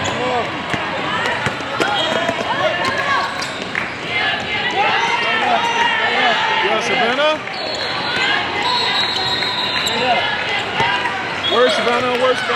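A basketball thumps as it is dribbled on the court.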